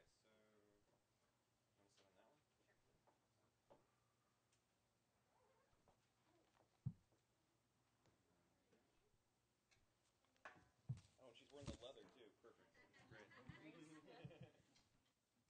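A man plays an instrument in short, scattered phrases, quiet at first and louder near the end.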